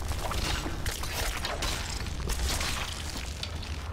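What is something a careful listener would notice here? Weapons clash and strike a creature in a fight.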